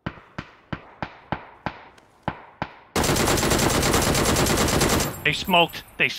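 Gunshots fire in a rapid series.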